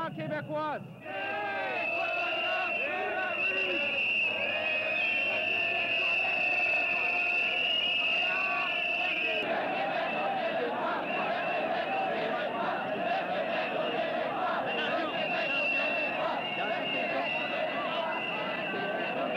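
A large crowd chants and shouts outdoors.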